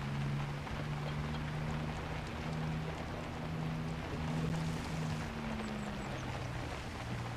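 A sports car engine hums steadily at low revs.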